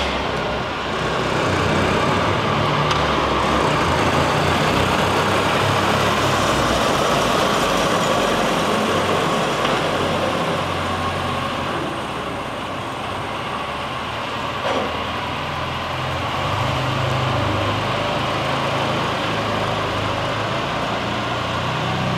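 An electric utility cart hums as it rolls across a large echoing hall.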